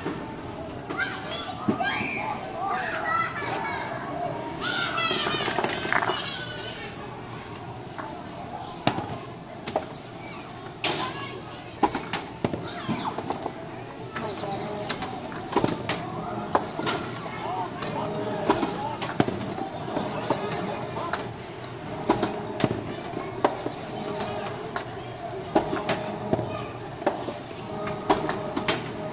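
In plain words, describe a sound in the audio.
Balls knock and roll down an arcade ramp game lane.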